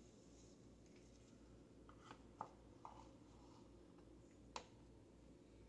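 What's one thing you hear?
A brush scrapes and taps against a plastic bowl.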